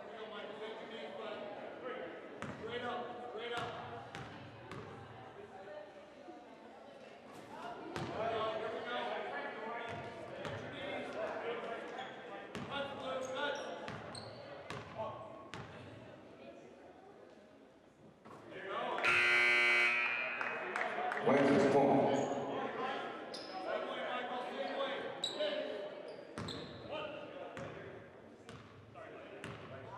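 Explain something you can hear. A crowd of spectators chatters in an echoing hall.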